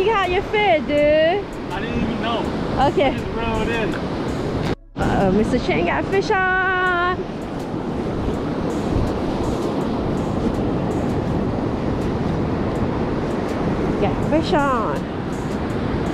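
Waves break and wash up on a beach.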